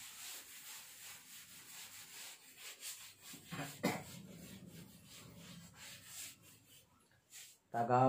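A cloth rubs and wipes across a chalkboard.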